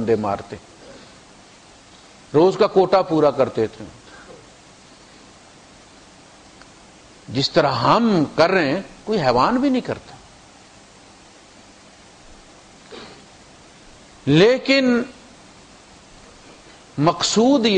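A man recites in a melodic chanting voice through a microphone, in phrases with pauses between them.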